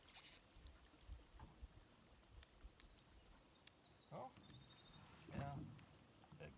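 Water laps gently against a boat hull.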